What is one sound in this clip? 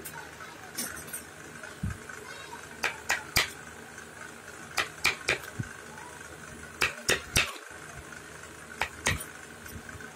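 A wooden piece taps and knocks against carved wood.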